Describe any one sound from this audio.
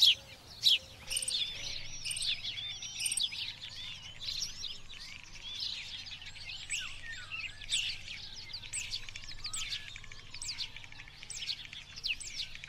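Jackdaws chatter and call busily.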